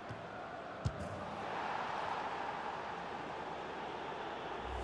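A stadium crowd roars and cheers loudly.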